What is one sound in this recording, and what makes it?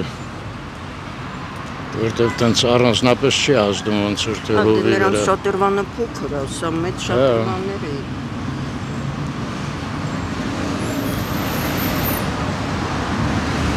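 A crowd of people murmurs in the background outdoors.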